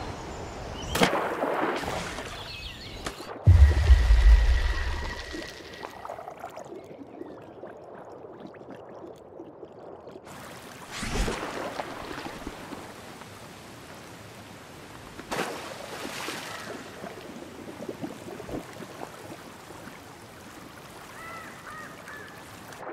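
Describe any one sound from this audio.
Water splashes softly.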